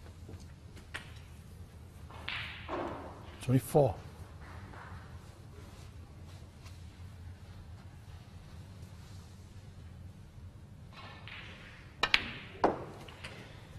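Snooker balls knock together with a hard clack.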